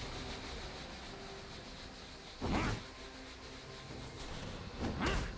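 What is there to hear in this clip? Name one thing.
Video game spells whoosh and burst during a fight.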